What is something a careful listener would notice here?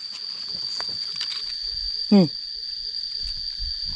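Dry leaves and soil rustle as a hand pulls up a plant.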